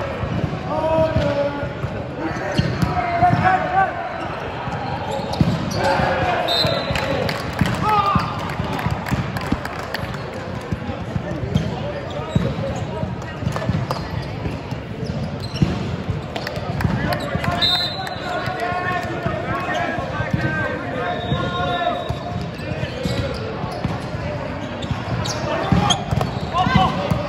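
A volleyball is struck in a large echoing hall.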